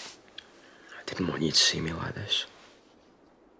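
A young man speaks in a low, subdued voice close by.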